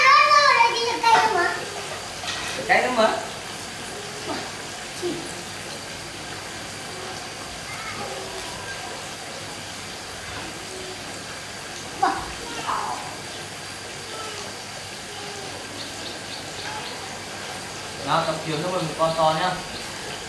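Oil sizzles softly in a pan over a gas burner.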